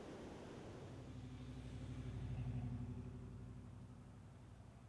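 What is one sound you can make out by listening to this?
Vehicles drive along a street.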